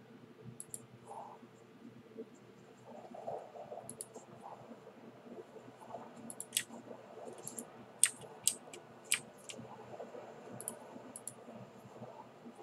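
Fire spells burst and crackle.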